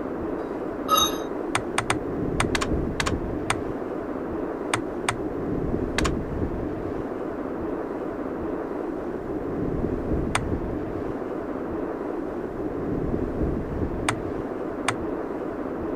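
Short menu clicks tick.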